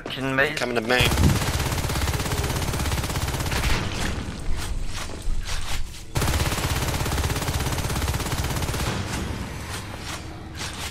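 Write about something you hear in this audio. An automatic rifle fires in long rapid bursts.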